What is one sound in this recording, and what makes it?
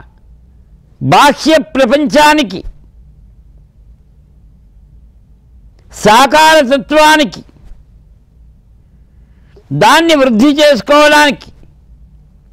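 An elderly man chants in short, drawn-out phrases with pauses between them.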